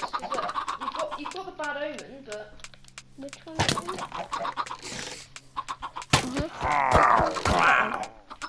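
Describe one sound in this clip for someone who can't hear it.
Chickens cluck and squawk close by.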